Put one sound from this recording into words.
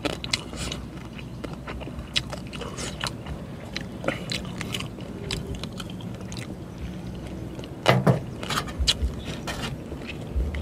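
A man chews and smacks his lips loudly close up.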